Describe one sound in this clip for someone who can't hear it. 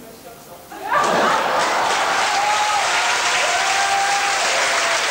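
A large band starts playing loudly in an echoing hall.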